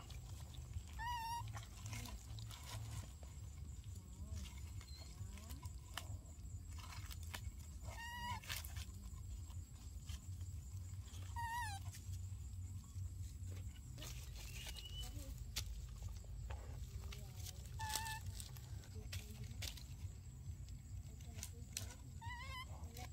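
A baby monkey squeaks in short high calls.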